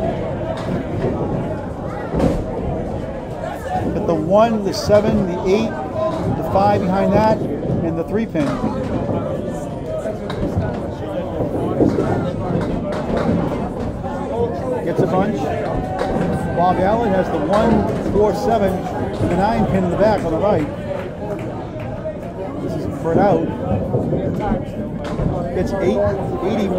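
A crowd of men chatters in a large echoing hall.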